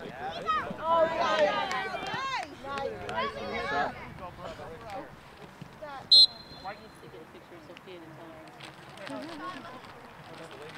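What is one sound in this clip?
Young children shout and cheer excitedly outdoors.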